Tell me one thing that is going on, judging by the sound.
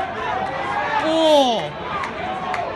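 Spectators cheer loudly nearby.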